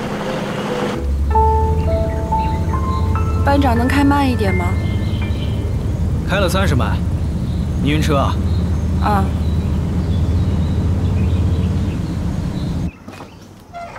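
An off-road jeep engine rumbles, heard from inside the cab.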